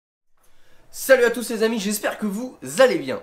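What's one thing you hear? A young man speaks close to the microphone, with animation.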